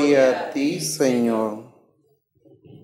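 A man sings a short phrase through a microphone.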